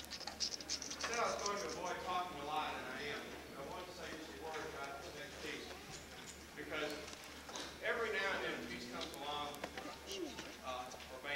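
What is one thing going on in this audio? A middle-aged man speaks loudly to an audience without a microphone.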